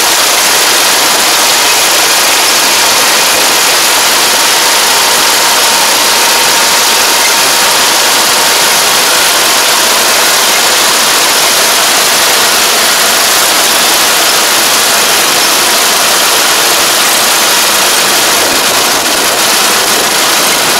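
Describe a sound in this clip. A combine harvester runs close by, cutting rice.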